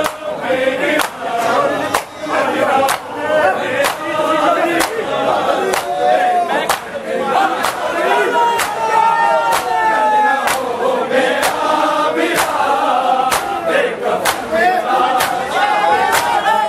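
Men beat their chests with their hands in a steady rhythm.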